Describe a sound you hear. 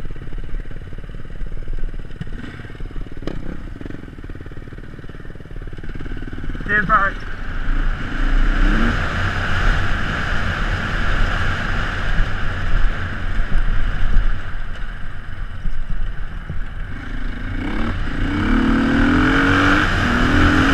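A dirt bike engine buzzes and revs up close.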